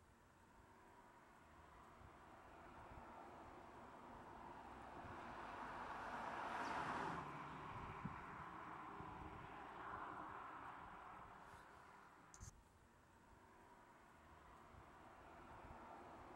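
Tyres roll over asphalt.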